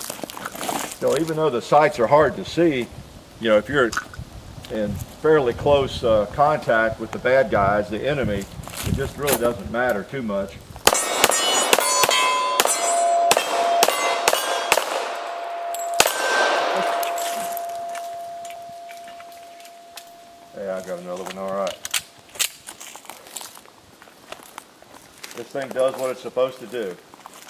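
An older man talks calmly outdoors, close by.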